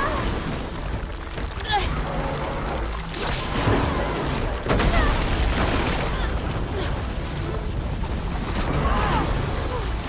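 Explosions boom and crackle with bursts of fire.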